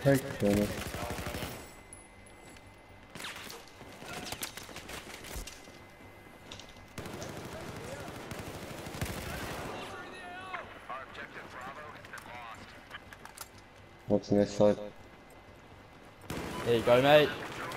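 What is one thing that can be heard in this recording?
Gunfire rattles in sharp bursts.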